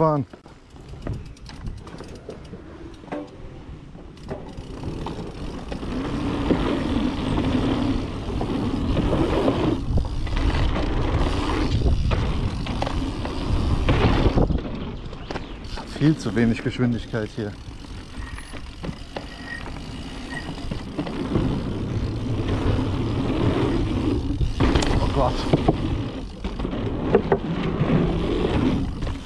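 Bicycle tyres rattle over wooden boards.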